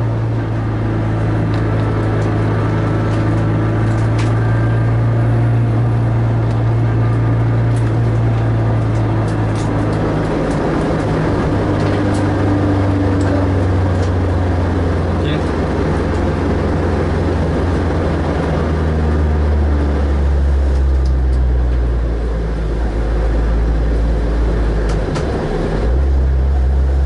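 A car engine hums steadily from inside the cabin, its pitch shifting as the car speeds up and slows down.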